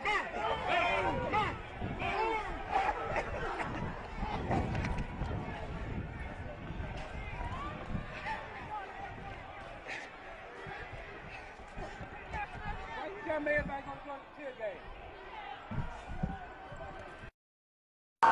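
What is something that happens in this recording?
A crowd of people shout and yell nearby outdoors.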